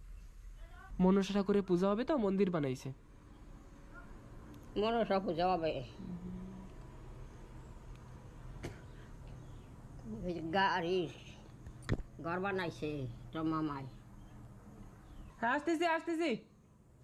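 An elderly woman speaks close by in short, lively bursts.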